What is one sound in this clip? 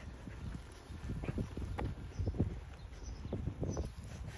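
A dog's paws patter on the ground as it walks.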